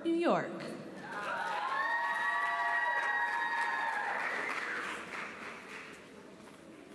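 An audience cheers loudly in a large hall.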